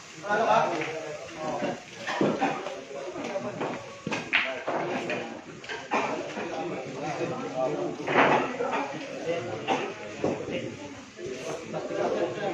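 Several men chat nearby.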